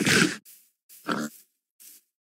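A short pop sounds as an item is picked up.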